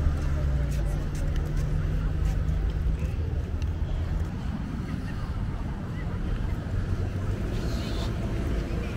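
Footsteps scuff on pavement close by.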